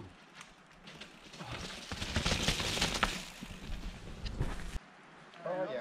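Bicycle tyres roll over a dirt trail.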